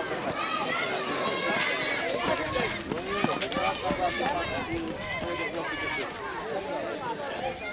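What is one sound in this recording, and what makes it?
Young girls chatter and call out outdoors.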